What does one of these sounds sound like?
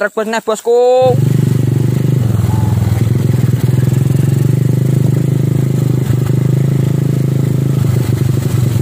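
A dirt bike engine roars loudly close by.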